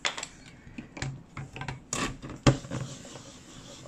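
An ink pad taps against a stamp on a hard surface.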